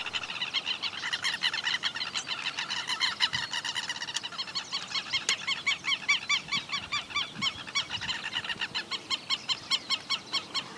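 Lapwings call with rapid, shrill, repeated cries.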